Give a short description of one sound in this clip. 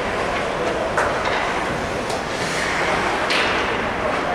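A hockey stick clacks against the puck.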